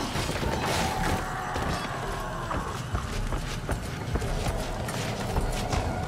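Footsteps thud steadily on wooden planks.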